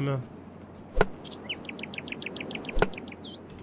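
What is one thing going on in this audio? A blade chops into a tree trunk with sharp knocks.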